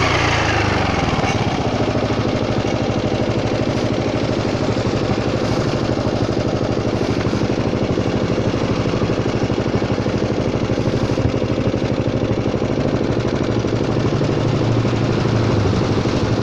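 A scooter engine idles with a steady, rapid putter close by.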